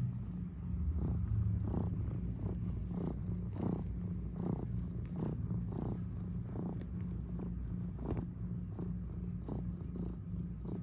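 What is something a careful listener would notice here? A cat's claws scratch and pluck at a fleecy blanket in a slow rhythm.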